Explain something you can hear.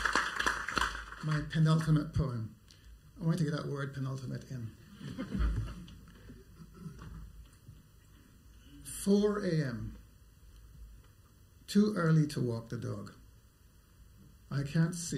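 A man reads out slowly into a microphone, with pauses.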